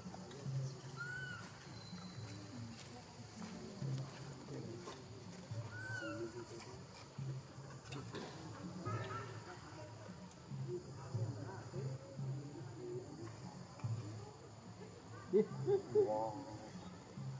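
A baby monkey squeaks faintly now and then.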